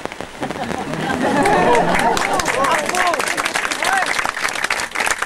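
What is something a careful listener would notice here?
A crowd of men and women laughs loudly.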